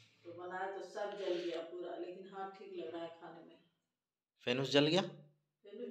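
A middle-aged woman speaks calmly nearby.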